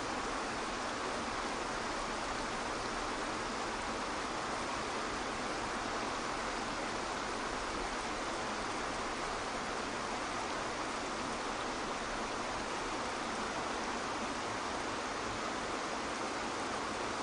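A waterfall pours steadily into a pool.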